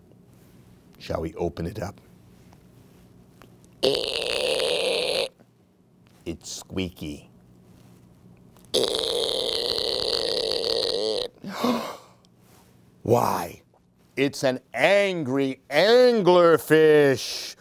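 An older man reads aloud expressively, close by.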